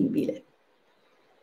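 A woman speaks briefly close to a microphone.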